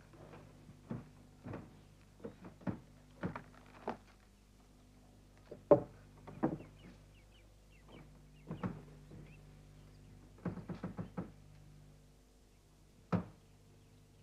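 Wooden pieces knock sharply against a table.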